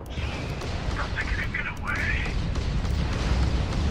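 Laser cannons fire in quick bursts.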